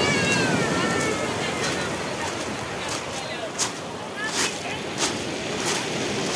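Waves wash and splash onto a pebble shore.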